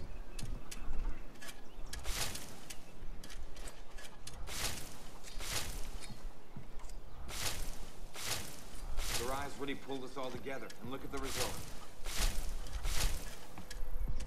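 Leafy plants rustle as they are pulled up.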